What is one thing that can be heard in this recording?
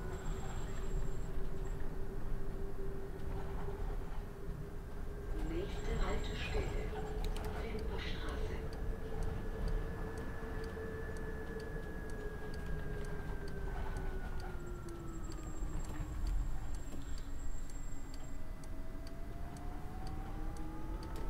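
A bus engine hums steadily, its pitch rising and falling as the bus speeds up and slows down.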